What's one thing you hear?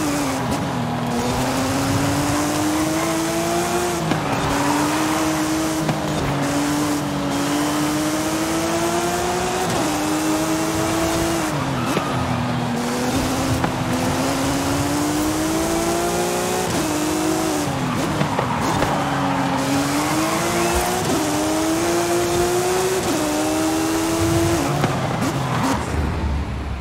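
A race car engine roars loudly, revving up through the gears and dropping at each shift.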